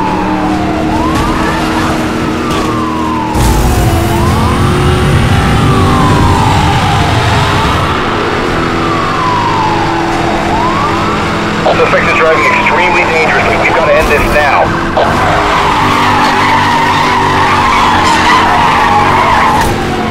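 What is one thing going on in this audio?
A car engine roars at high speed.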